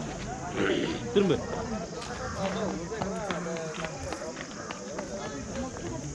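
A crowd of people chat outdoors.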